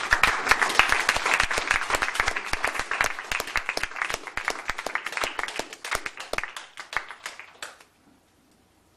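A saxophone plays.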